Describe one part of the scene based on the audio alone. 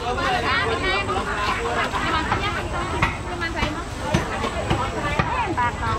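A woman vendor talks with a customer nearby.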